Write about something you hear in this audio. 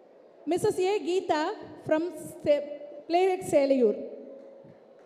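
A middle-aged woman speaks with animation through a microphone and loudspeakers.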